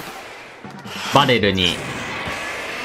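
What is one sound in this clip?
A game's paint blaster fires with a bright burst.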